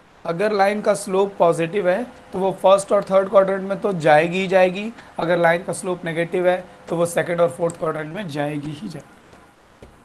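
A young man speaks clearly into a close microphone, explaining steadily.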